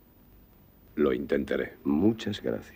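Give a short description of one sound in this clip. An older man answers in a deep, firm voice.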